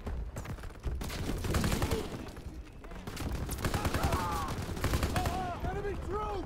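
A rifle fires rapid bursts of shots indoors.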